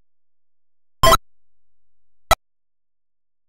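Short electronic game blips sound twice.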